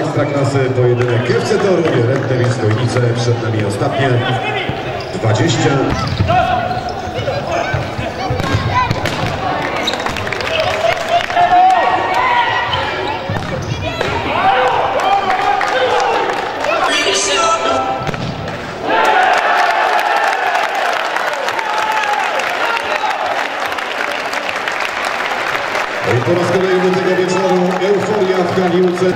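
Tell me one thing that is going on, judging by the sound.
A crowd cheers in an echoing sports hall.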